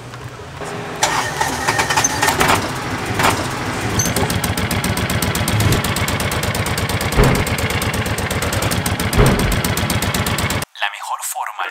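A small engine starts and idles with a fast, steady putter.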